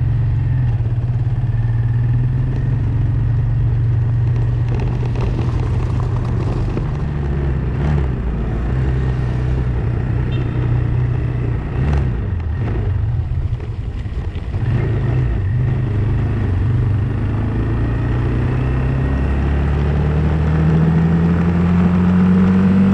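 A motorcycle engine hums steadily and revs higher near the end.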